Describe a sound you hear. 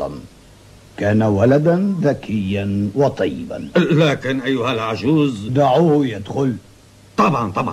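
A middle-aged man speaks with annoyance, close by.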